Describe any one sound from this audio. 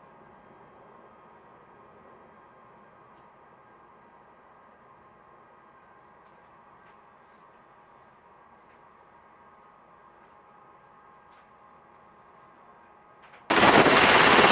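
Helicopter rotors hum faintly, muffled as if behind glass.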